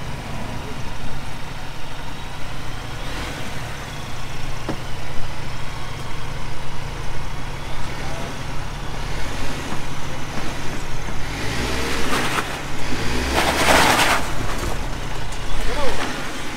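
An engine rumbles low and steady as a truck crawls slowly.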